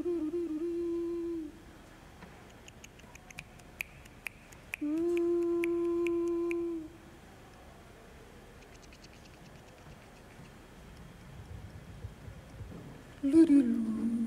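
A man sings long held notes into a microphone.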